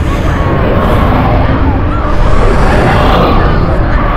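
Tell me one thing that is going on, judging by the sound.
A boy speaks shakily.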